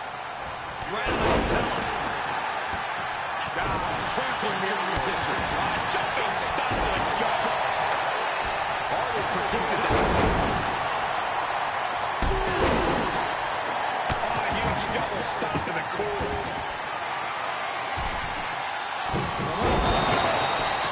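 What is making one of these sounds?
Heavy bodies slam down onto a wrestling mat with loud thuds.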